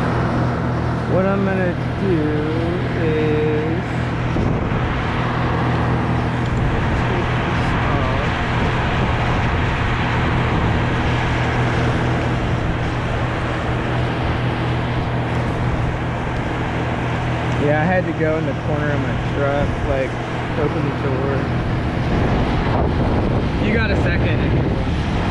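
A man talks briefly close by.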